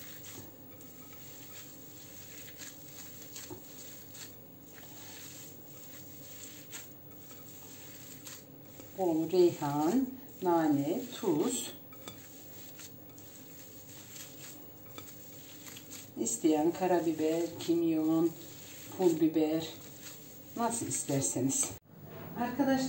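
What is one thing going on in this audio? Hands squish and knead soft raw meat.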